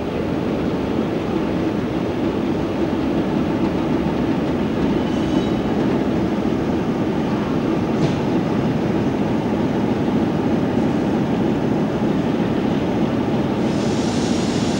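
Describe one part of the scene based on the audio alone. A diesel locomotive engine idles with a steady, low rumble.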